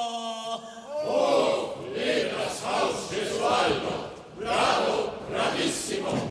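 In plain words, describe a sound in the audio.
A choir sings loudly with an orchestra.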